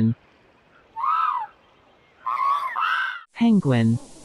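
Pelicans make short low calls.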